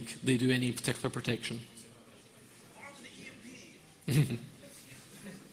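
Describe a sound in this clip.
A man speaks into a microphone in an echoing hall.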